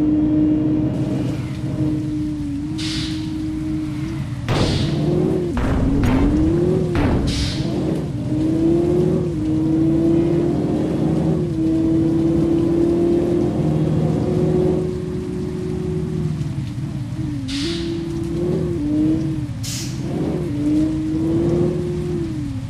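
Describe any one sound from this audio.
A car engine hums steadily, its pitch rising and dipping as the car speeds up and slows down.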